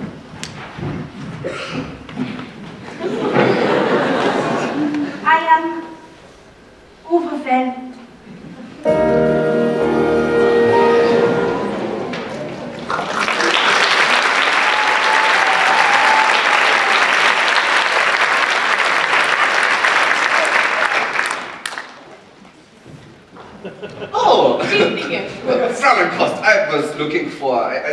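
A man speaks loudly on a stage, echoing in a large hall.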